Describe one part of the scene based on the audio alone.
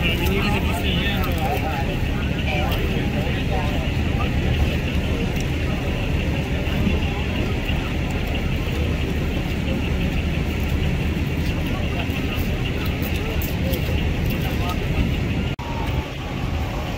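Men talk to each other nearby.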